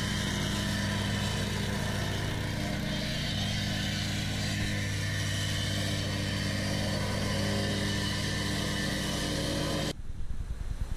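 Gravel crunches and rattles under a vibrating plate compactor.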